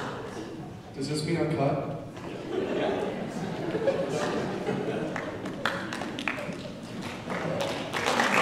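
Young men sing together into microphones.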